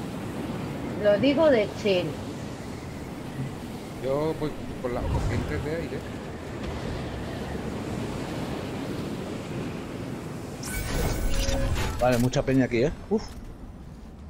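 A man talks casually into a microphone, close up.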